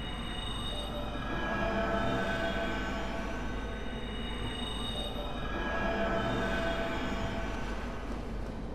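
A bright magical chime rings and shimmers.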